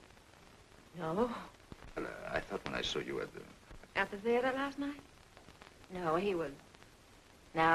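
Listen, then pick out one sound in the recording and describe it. A woman speaks calmly in reply.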